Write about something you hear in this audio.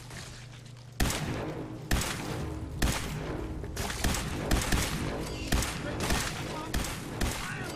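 Gunshots fire in rapid bursts with loud blasts.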